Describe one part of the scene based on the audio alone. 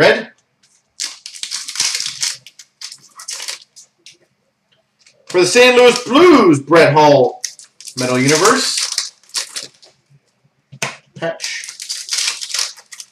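A foil card pack crinkles and tears open in a man's hands.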